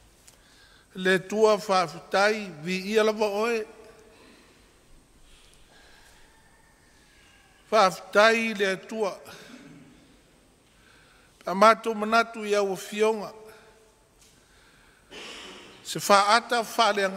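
An elderly man speaks slowly and solemnly into a microphone, with pauses between phrases.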